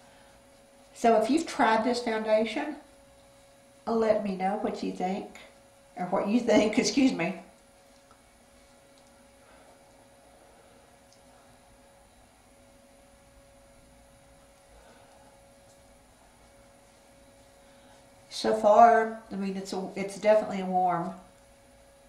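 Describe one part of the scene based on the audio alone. A middle-aged woman speaks calmly and close to a microphone, in short bursts with pauses.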